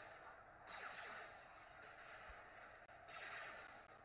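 A tank's cannon booms.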